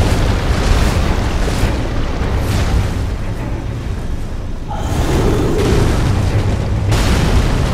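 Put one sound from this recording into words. A sword swings and clashes in combat.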